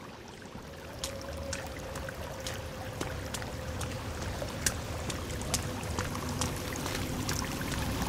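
Footsteps crunch on a rocky floor.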